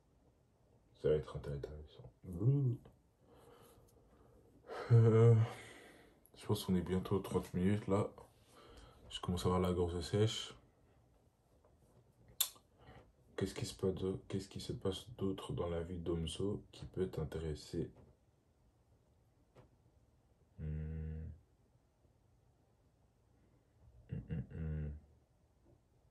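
A young man talks close by in a casual, relaxed way, pausing now and then.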